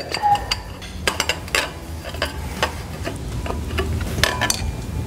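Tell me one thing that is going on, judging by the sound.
Metal parts click and clack as a clamp is fitted onto a pipe.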